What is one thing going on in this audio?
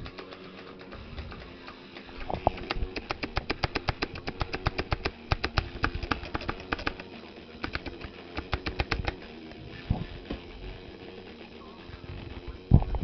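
Game music plays with quick plucked guitar notes.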